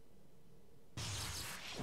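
A magical spell whooshes loudly.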